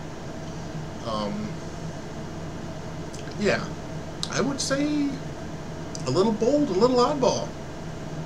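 A middle-aged man speaks calmly into a headset microphone, close up.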